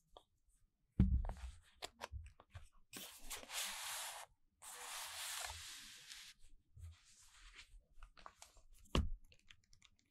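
A book knocks softly against a table.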